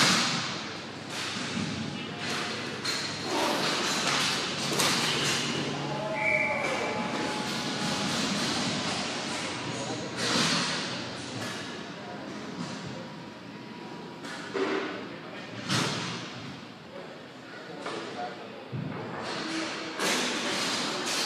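Wheels roll and scrape on a hard rink floor, echoing in a large hall.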